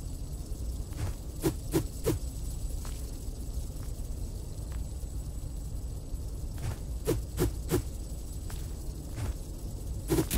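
Quick footsteps tap on a stone floor.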